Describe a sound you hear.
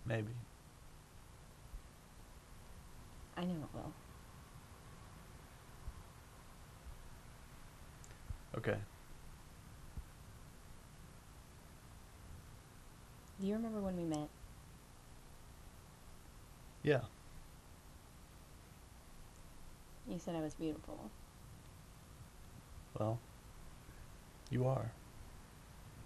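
A young woman speaks softly through tears, in short bursts, close by.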